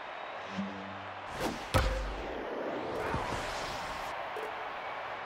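A crowd cheers and murmurs in a large stadium.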